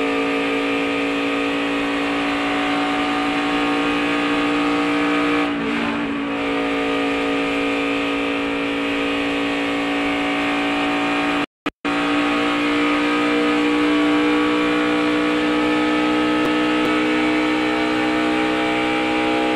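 A race car engine roars loudly at high, steady speed from close by.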